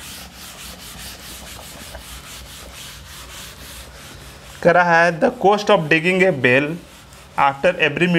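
A duster rubs across a chalkboard.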